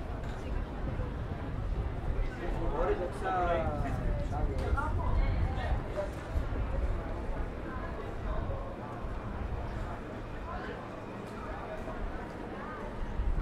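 Footsteps walk on paving.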